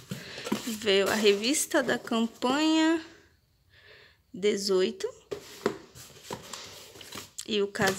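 A paper magazine rustles as a hand pulls it out.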